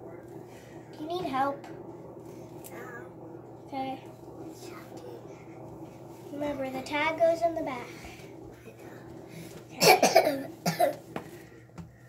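A young girl sings nearby.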